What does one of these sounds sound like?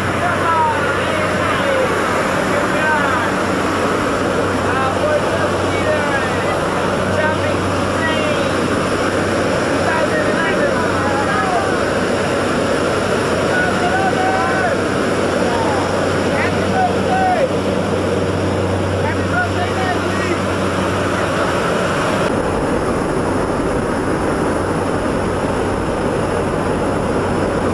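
A propeller aircraft engine drones inside the cabin.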